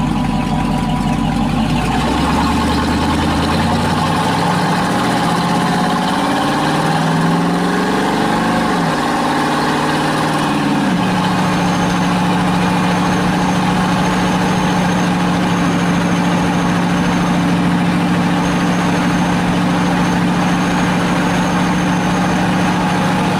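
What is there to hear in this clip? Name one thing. A loud car engine roars and revs up through the gears, then drones steadily.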